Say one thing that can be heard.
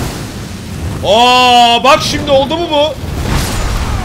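A man shouts excitedly into a microphone.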